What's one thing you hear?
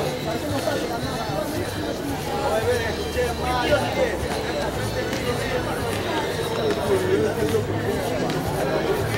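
A crowd of young people chatter and call out outdoors at a distance.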